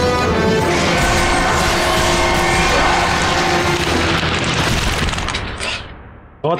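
Chained blades whoosh and slash through the air in a fierce fight.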